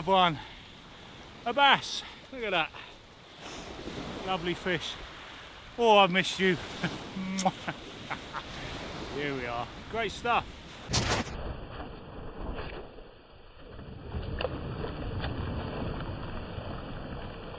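Waves wash onto a pebble beach.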